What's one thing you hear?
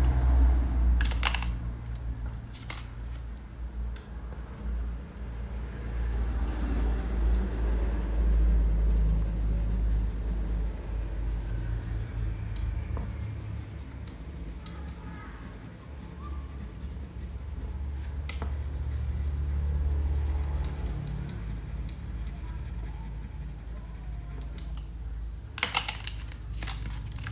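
Crayons rattle in a plastic box as a hand picks through them.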